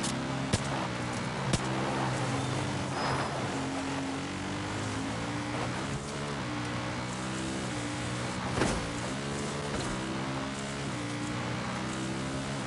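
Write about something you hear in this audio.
A quad bike engine drones and revs up and down.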